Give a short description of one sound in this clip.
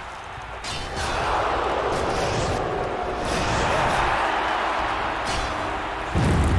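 Flames whoosh and roar in a burst.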